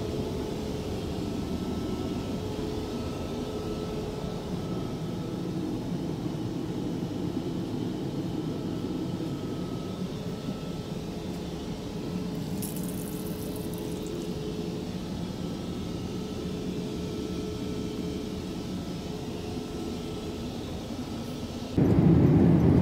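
An airplane cabin hums with a steady low drone.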